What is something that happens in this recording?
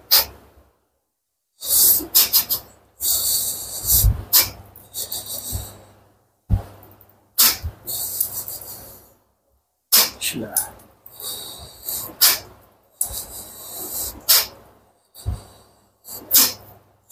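An elderly man speaks with animation in short bursts, close by.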